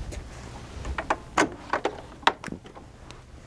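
A bed rail clicks and knocks.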